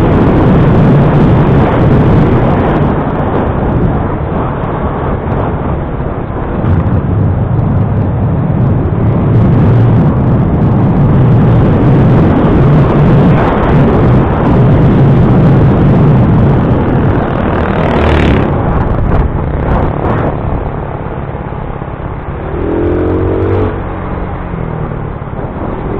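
A motorbike engine hums steadily at close range.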